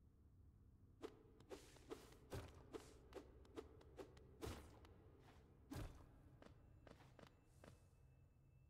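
Small footsteps tap quickly on a hard floor.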